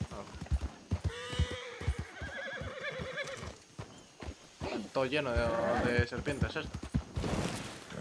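Horse hooves clop quickly on a dirt road.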